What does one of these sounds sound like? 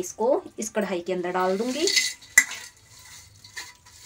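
Rice pours from a metal plate into a pan.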